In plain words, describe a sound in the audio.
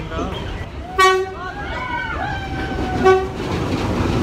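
A train horn blares loudly twice.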